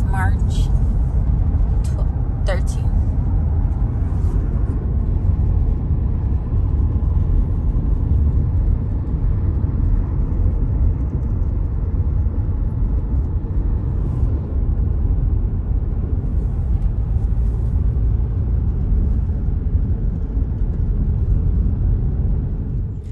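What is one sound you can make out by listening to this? A car engine hums steadily with a low road rumble from inside the car.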